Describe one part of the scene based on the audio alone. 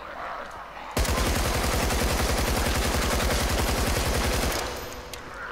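An automatic rifle fires a long rapid burst.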